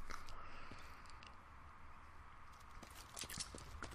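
A gun clicks as it is switched.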